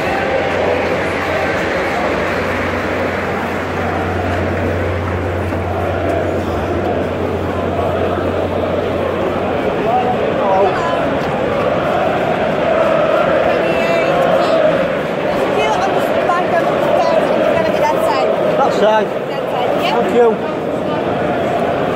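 A large crowd of men sings and chants loudly, echoing under a roof.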